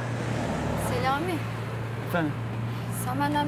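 A young woman speaks briefly close by.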